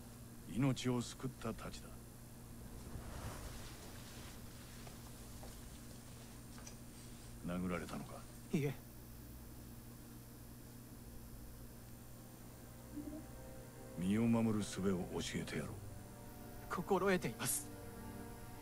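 A young man speaks calmly and quietly, close by.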